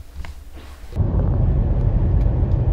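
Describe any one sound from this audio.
Car tyres roar steadily on a highway.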